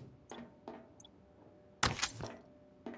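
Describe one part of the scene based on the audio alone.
A pistol fires a sharp shot.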